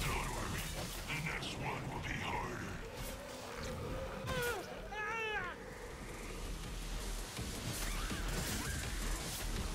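A blade slashes and hacks through flesh with wet, heavy impacts.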